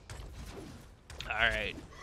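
Gunshots crack in rapid bursts from a game.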